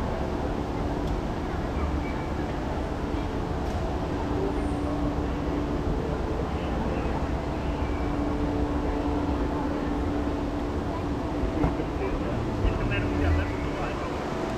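Escalators whir and rumble nearby.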